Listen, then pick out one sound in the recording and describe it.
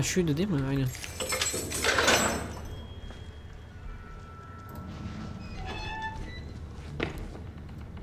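A metal cage rattles as it is climbed.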